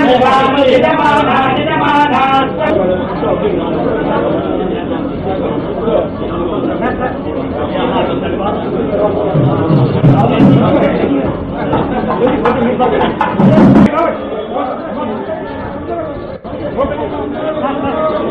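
A crowd of men talks and murmurs close by.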